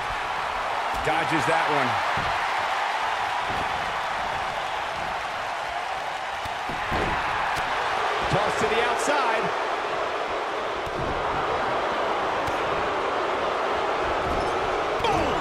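A large crowd cheers steadily in a big echoing arena.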